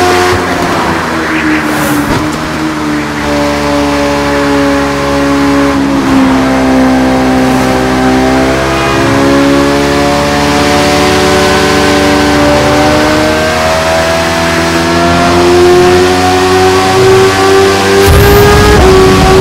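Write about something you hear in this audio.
A motorcycle engine hums steadily at high speed, its pitch shifting up and down with gear changes.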